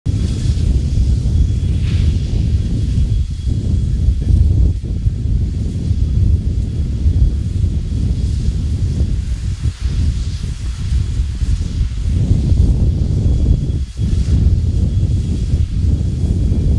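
Several steam locomotives chuff loudly and heavily close by.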